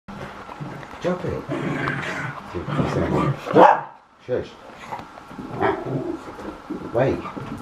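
An older man talks and laughs nearby.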